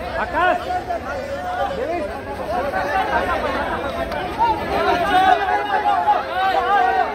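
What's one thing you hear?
A large crowd of men cheers and shouts excitedly outdoors.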